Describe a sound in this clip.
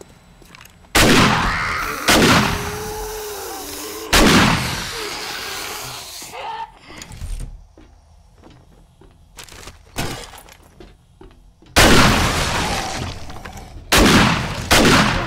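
Heavy rifle shots boom one at a time, each with a long echoing tail.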